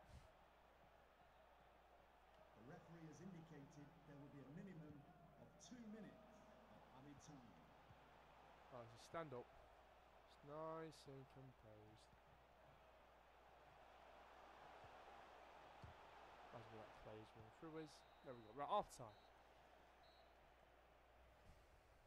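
A large stadium crowd murmurs and cheers.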